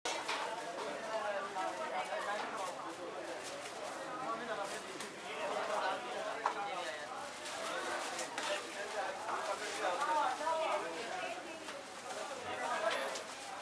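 A metal spoon scrapes through a tray of food.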